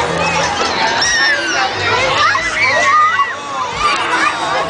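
Young girls squeal and shriek with delight close by.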